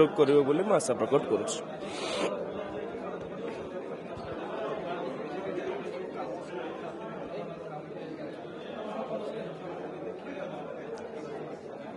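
A young man speaks calmly into close microphones.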